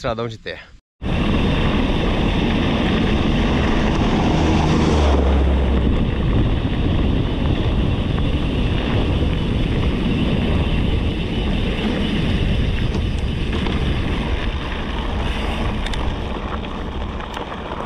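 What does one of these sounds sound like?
Bicycle tyres rumble and crunch over a dirt road.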